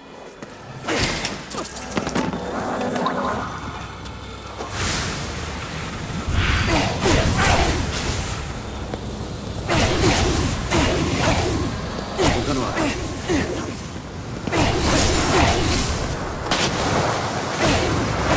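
Magical energy blasts crackle and whoosh in bursts.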